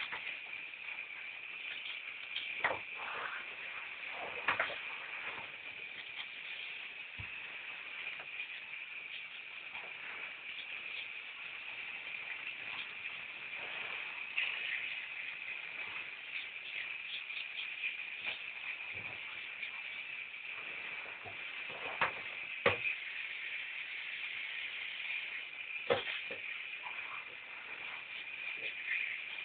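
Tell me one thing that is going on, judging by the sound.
Water from a shower head sprays and splashes steadily.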